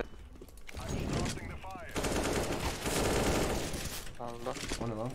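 Gunshots ring out.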